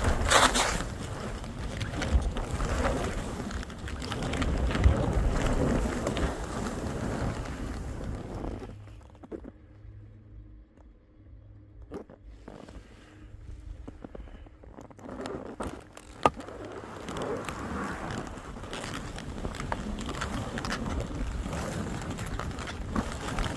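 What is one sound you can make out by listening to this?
Skis hiss and scrape through snow.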